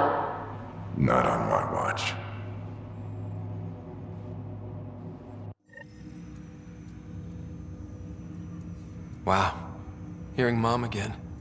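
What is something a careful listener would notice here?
A young man speaks quietly and calmly.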